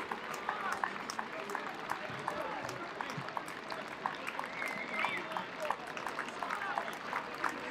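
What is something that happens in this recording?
A crowd cheers and calls out in the distance.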